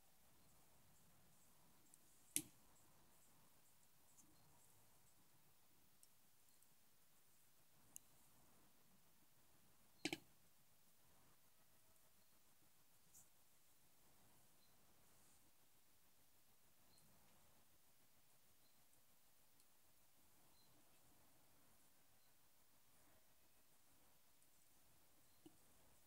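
Water bubbles in a pot.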